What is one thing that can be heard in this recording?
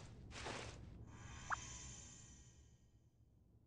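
A shimmering chime rings out and fades.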